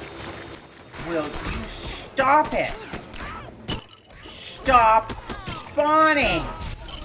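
Light punches and zapping effects land in a quick scuffle.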